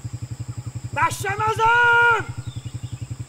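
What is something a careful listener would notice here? A middle-aged man shouts loudly, calling out.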